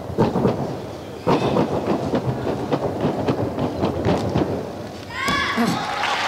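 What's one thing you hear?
A gymnast's feet thump rapidly on a springy track.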